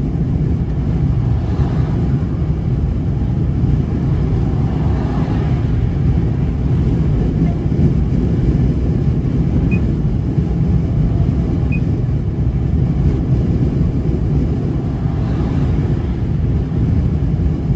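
Cars swish past nearby on the motorway.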